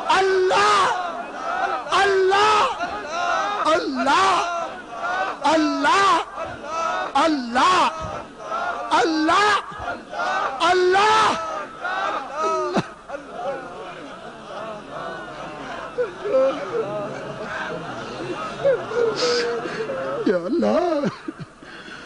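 A man recites loudly in a melodic voice through a microphone.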